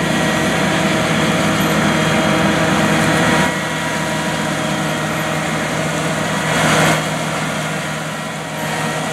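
A tractor engine rumbles steadily as the tractor rolls closer.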